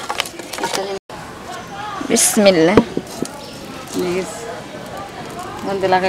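A wood fire crackles softly under a pan.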